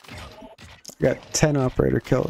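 A man speaks close into a headset microphone.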